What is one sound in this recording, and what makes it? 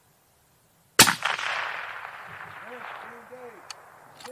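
A rifle fires a single loud shot that echoes across open ground.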